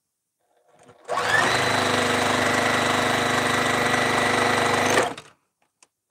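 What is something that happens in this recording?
A high-speed straight-stitch sewing machine runs, stitching fabric.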